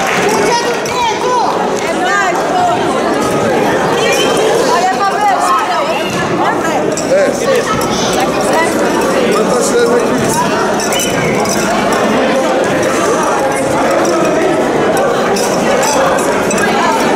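Many women chatter and call out in a large echoing hall.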